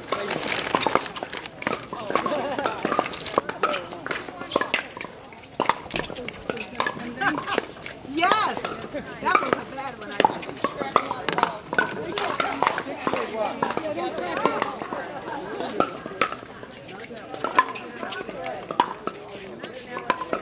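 Several adults talk and call out nearby outdoors.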